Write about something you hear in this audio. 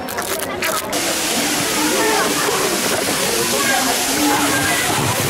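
Water jets splash and hiss steadily outdoors.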